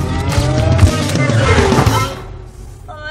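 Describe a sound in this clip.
Two young women sing loudly close by.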